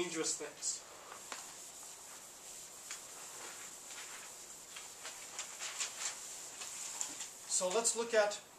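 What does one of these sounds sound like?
A chalkboard eraser rubs and swishes across a board.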